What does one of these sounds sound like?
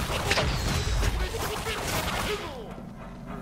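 A loud explosion bursts and crackles, then dies away.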